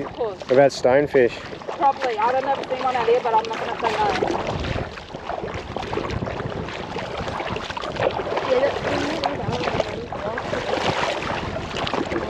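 Feet wade and slosh through shallow water.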